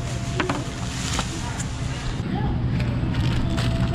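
A plastic wrapper crinkles close by.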